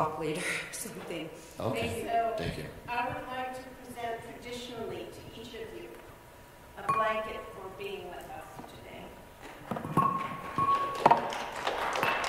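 An elderly woman speaks through a microphone in a large hall.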